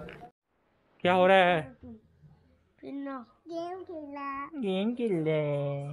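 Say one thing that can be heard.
A small child babbles close by.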